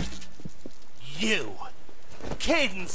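A man speaks angrily close by.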